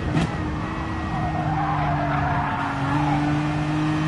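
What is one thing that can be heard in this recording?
Tyres squeal briefly through a fast corner.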